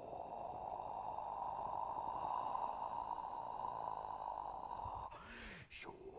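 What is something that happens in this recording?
A homemade instrument gives off a loud, steady rushing hiss.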